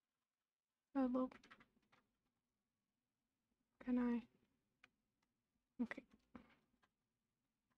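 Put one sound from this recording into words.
A young woman speaks briefly and casually into a nearby microphone.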